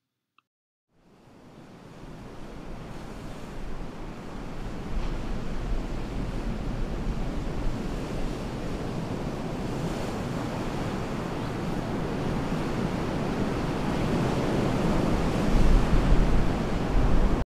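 Waves crash and wash onto a shore.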